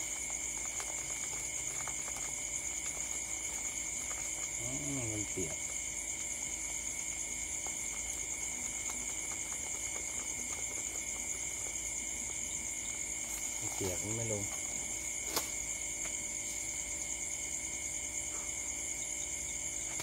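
Charcoal crackles softly in a small fire.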